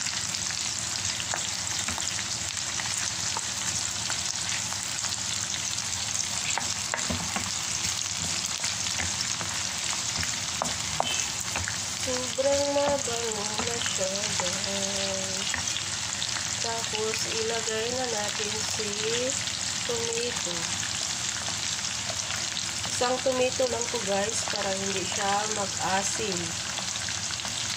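Oil sizzles and crackles steadily in a pan.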